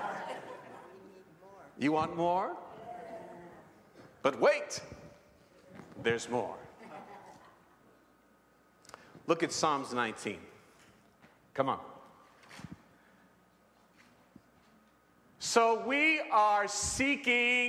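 A man preaches with animation into a microphone, his voice echoing in a large hall.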